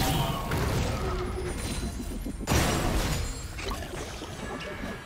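Spell blasts and weapon hits crackle and boom in a busy fight.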